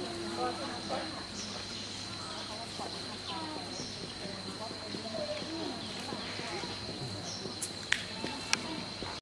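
Leaves rustle softly as a monkey shifts about in a tree.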